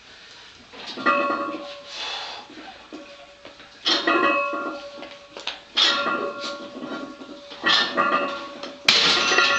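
A man exhales hard with each press.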